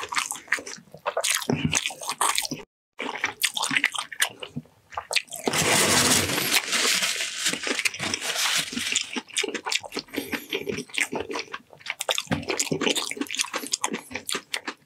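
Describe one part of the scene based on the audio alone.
A man chews and slurps loudly close to a microphone.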